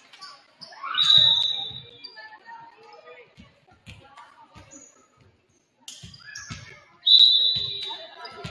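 A referee's whistle blows sharply in a large echoing gym.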